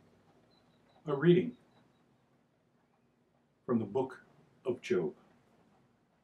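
An elderly man reads aloud in short bursts, close by.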